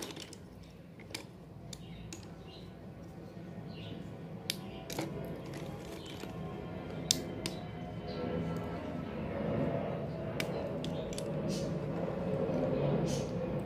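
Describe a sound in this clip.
Wooden sticks clatter and click as a hand rummages through them.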